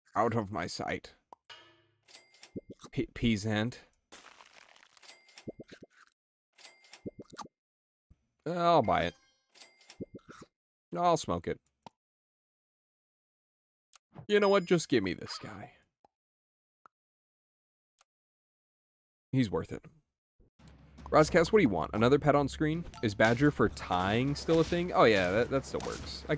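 Short cartoon game sound effects pop and chime.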